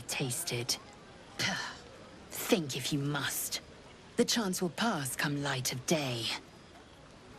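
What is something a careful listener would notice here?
A woman speaks sharply and dismissively, close by.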